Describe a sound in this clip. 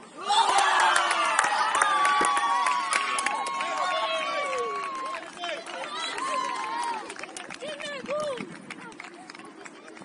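Young players shout and cheer loudly across an open outdoor pitch.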